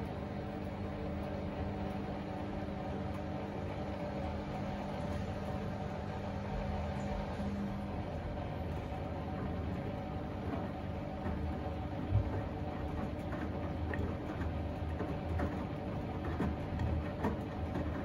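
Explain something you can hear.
Water and laundry slosh inside a washing machine drum.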